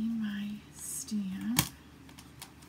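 A plastic folder clacks down onto a hard surface.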